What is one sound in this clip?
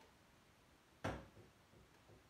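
A small object knocks against a shelf.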